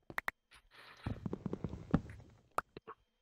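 A wooden block cracks and thuds as it is broken.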